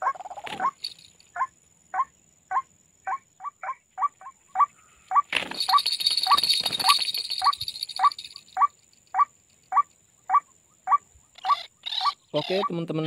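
A bird calls in short, evenly spaced chirps.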